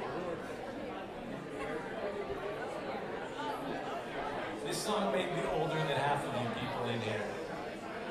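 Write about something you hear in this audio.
A man talks into a microphone over loudspeakers.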